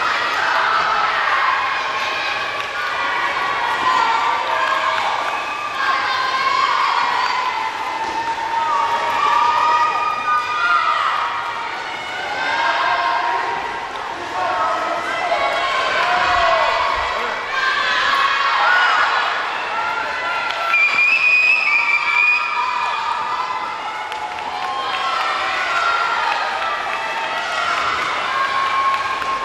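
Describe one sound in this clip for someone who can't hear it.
A crowd cheers and shouts throughout a large echoing hall.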